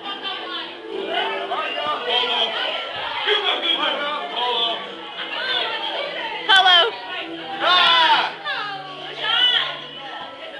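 A crowd of children shouts and cheers excitedly nearby.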